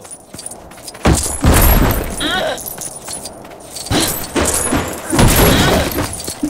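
Toy bricks clatter and scatter as objects smash apart.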